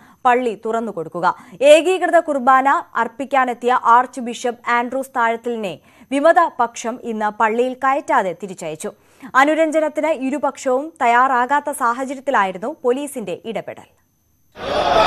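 A young woman reads out news calmly into a microphone.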